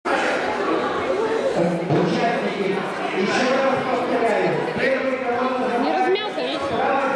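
A crowd of children and adults chatters throughout a large echoing hall.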